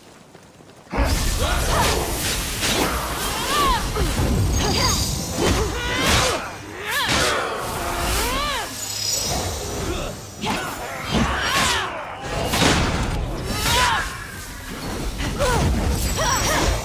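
Fiery explosions burst and crackle.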